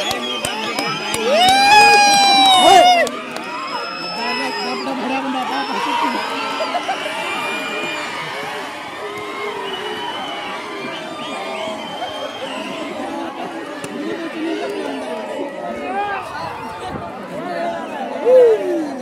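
A crowd of men and women chatter and call out loudly nearby outdoors.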